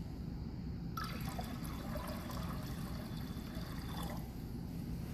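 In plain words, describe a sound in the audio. Liquid pours and splashes into glass beakers.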